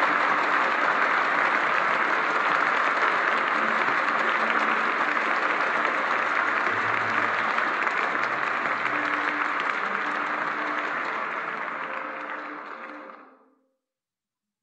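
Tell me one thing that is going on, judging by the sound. A violin plays faintly.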